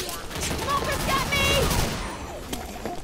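A gun fires rapidly and loudly.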